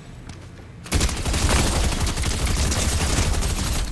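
Rapid gunfire bursts from an automatic weapon.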